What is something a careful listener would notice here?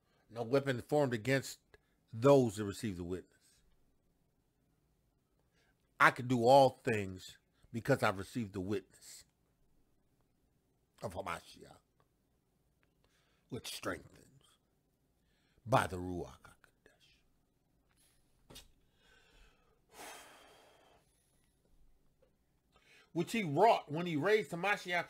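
A middle-aged man speaks emphatically into a close microphone, in bursts with pauses.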